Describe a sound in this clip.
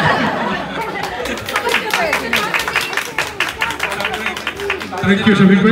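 A crowd claps their hands.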